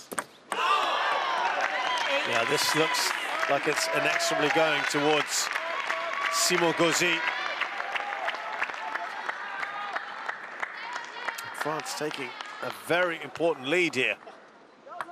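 Several men clap their hands.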